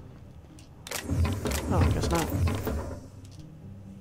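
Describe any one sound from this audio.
A metal crate is opened with a clatter.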